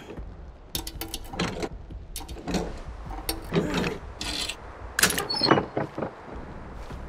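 Wooden lid rattles and clicks as a chest is searched.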